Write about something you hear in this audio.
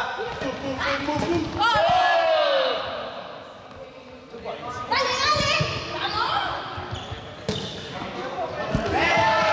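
Sneakers squeak and patter on a hard floor.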